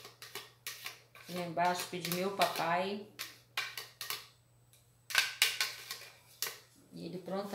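A spatula scrapes and taps against a plastic jug.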